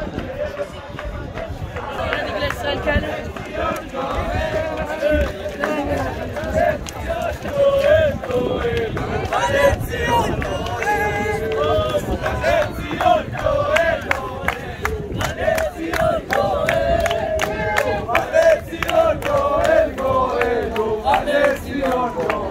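A crowd of young people sings and chants loudly outdoors.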